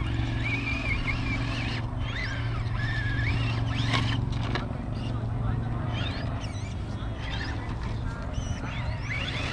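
Small tyres scrape and crunch over rocks.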